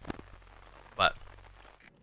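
Electronic static crackles briefly.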